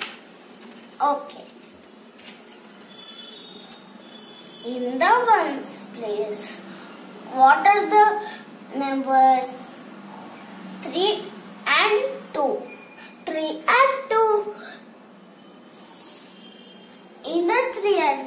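A girl speaks slowly and calmly, close by.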